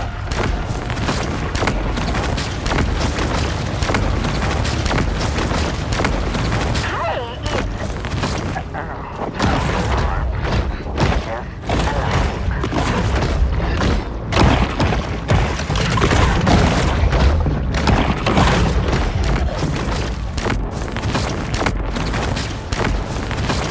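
Electric blasts crackle and zap.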